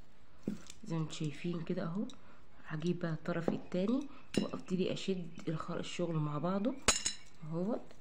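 Small plastic beads clink softly as they are handled.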